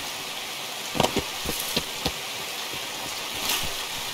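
Leafy branches rustle and scrape loudly in brief bursts.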